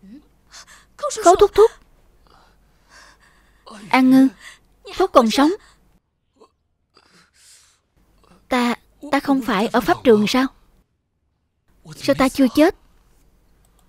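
A young woman speaks tearfully and urgently, close by.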